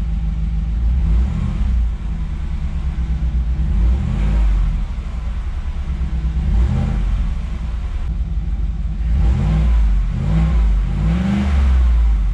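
A car engine revs up and drops back several times, its exhaust roaring in short bursts.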